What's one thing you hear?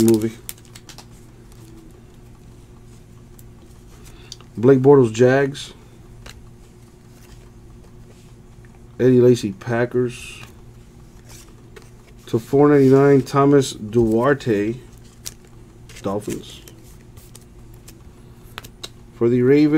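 Trading cards slide and shuffle against each other.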